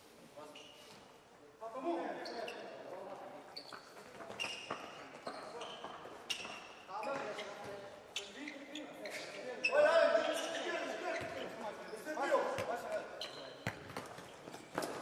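Sneakers squeak sharply on a hard indoor floor.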